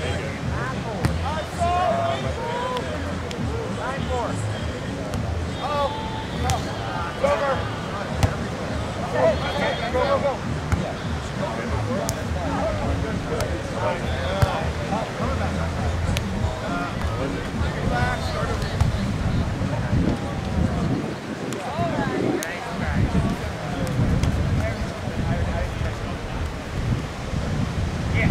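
Young men shout and call out to each other during a game.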